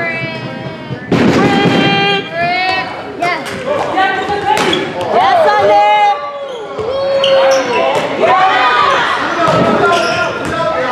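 Young men shout to each other across an echoing gym.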